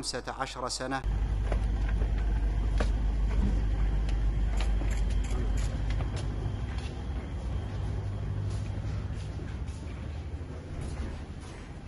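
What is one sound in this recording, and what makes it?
Footsteps shuffle on pavement outdoors.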